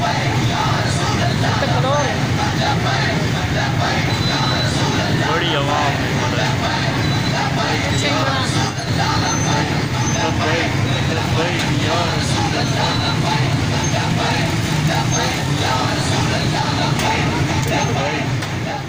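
Motorcycle engines rumble steadily close by.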